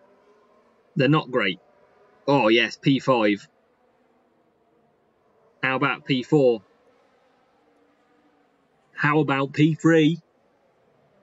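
A young man speaks with animation in short bursts, close to a microphone.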